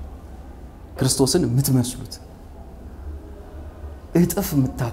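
A man speaks nearby in short bursts.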